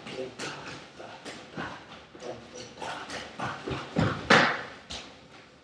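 Feet stamp and shuffle on a wooden floor in quick dance steps.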